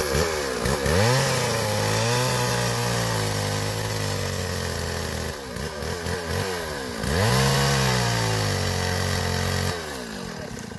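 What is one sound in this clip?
A chainsaw cuts through branches.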